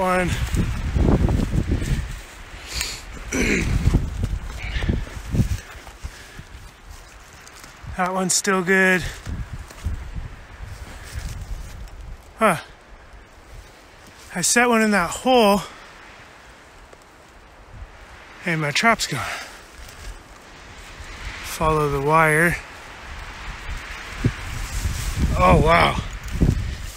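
Leaves and fern fronds rustle and brush close by.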